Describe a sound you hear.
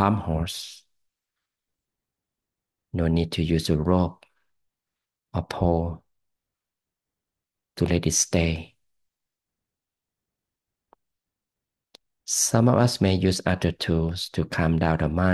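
A man talks calmly through a microphone, in short bursts with pauses.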